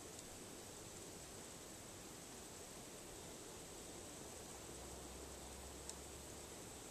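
Metal wind chimes tinkle softly now and then.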